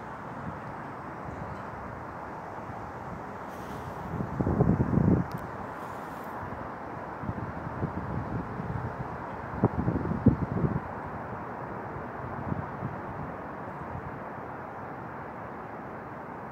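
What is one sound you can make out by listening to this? Wind blows steadily outdoors, with gusts rumbling now and then.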